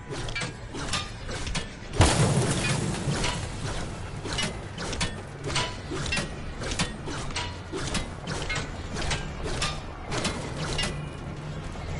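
A pickaxe strikes metal again and again with sharp clanks.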